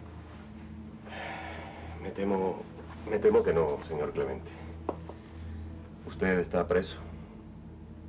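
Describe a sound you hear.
A middle-aged man speaks firmly, close by.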